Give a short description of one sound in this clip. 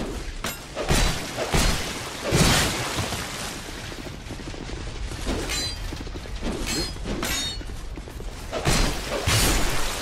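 Swords clang against a shield with a metallic ring.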